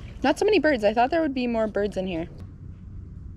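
A young woman speaks close to the microphone in a lively voice.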